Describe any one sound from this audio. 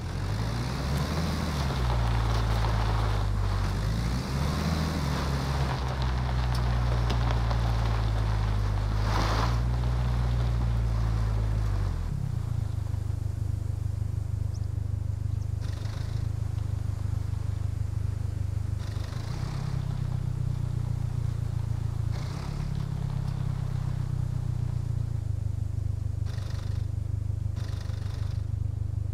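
A car engine hums steadily and revs as the car drives.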